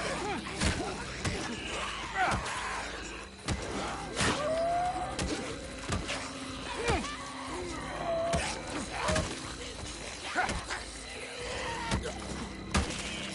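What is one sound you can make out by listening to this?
Creatures snarl and screech.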